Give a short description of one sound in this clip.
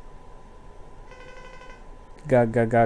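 A short electronic chime beeps.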